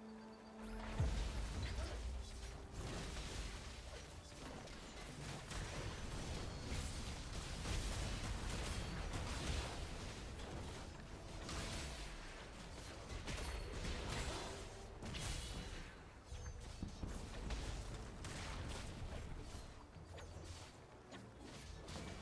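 Game spell effects crackle, zap and burst during a battle.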